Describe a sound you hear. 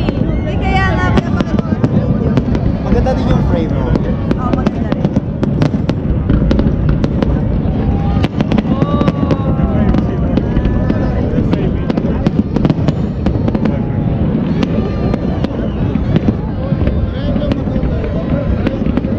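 Fireworks burst and crackle in the sky outdoors.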